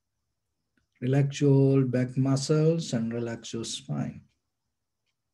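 A man speaks calmly and softly, close to a microphone.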